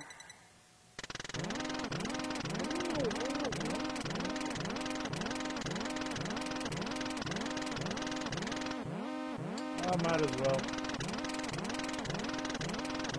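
Rapid electronic blips sound as game text types out letter by letter.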